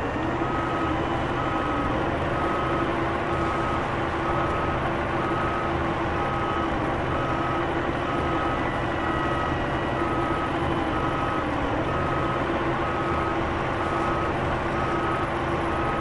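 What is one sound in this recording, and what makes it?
A hydraulic crane arm whines as it swings and lowers.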